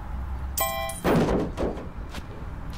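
An armchair thuds heavily into a metal container.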